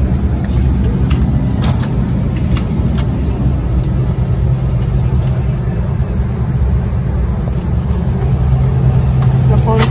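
Plastic ice cream tubs knock and scrape against a freezer shelf.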